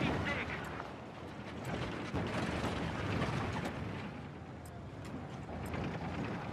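Battle noise rumbles with distant explosions and gunfire.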